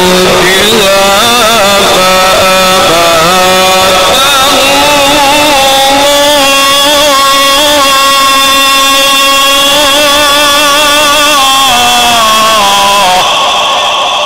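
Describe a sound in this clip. A man chants in a long, melodic voice through a microphone, with echo that slowly fades after he stops.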